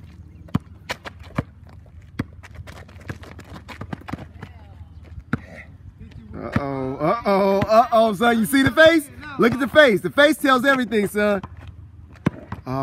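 A basketball bounces on hard pavement outdoors.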